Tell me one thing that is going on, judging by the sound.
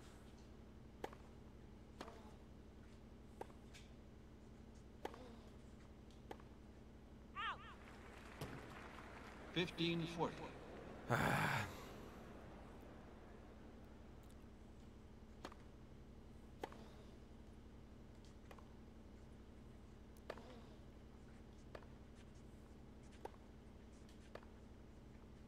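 Tennis balls are struck with sharp pops at a steady pace.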